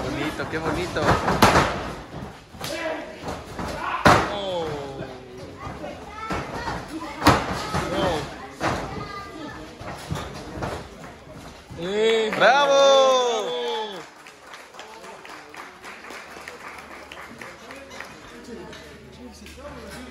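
A crowd of men and women shouts and cheers nearby.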